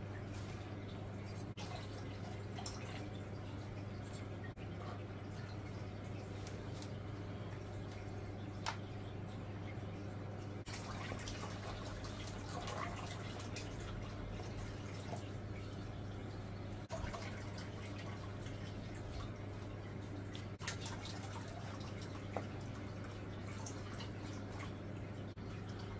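Water bubbles and gurgles steadily in a small tank.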